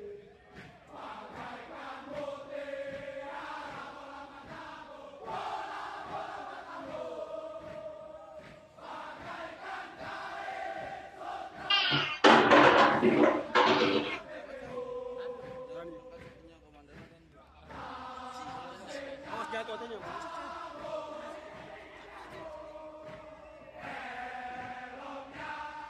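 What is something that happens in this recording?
A large group of soldiers chants in unison outdoors.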